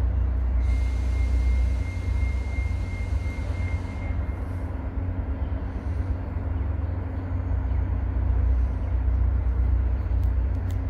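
A train rumbles in the distance as it slowly approaches.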